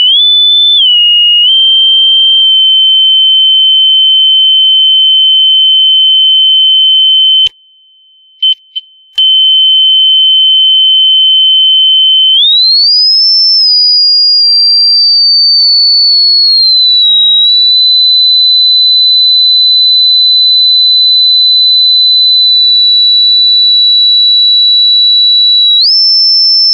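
A high, steady electronic test tone sounds from a loudspeaker, gliding up and down in pitch, and briefly cuts out.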